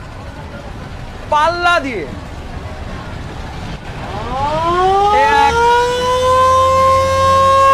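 A large crowd cheers and shouts far off outdoors.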